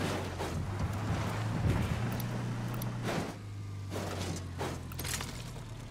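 A car crashes and rolls over with heavy thuds and scrapes.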